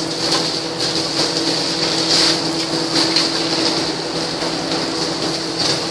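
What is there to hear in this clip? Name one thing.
Water streams from a hose and splashes onto pavement.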